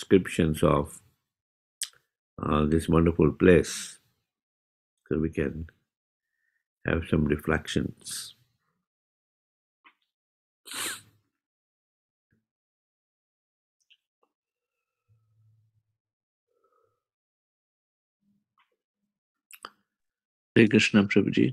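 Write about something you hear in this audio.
An elderly man speaks calmly in short phrases through an online call, with long pauses.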